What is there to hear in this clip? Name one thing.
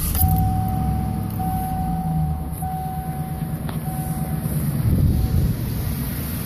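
A car's warning chime beeps repeatedly.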